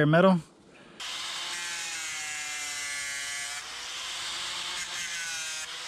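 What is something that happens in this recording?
A hand-held grinder whines steadily as it sands a surface.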